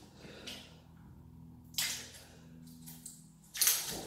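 A plastic bottle crackles in a man's hands.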